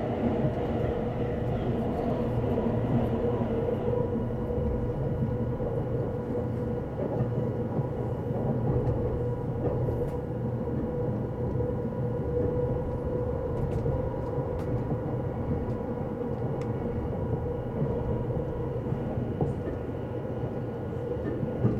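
A train rumbles steadily along its tracks, heard from inside a carriage.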